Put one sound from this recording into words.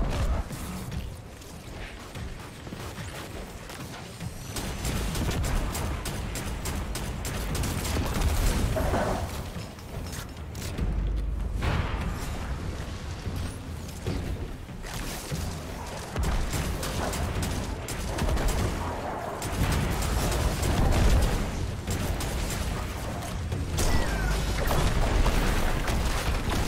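Rapid gunfire blasts in a video game.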